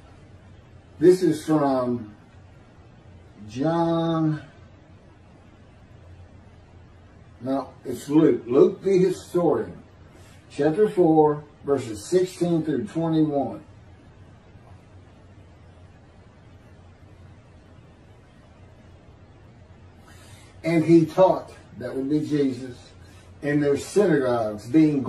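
An older man speaks calmly in short phrases with pauses, heard through an online call.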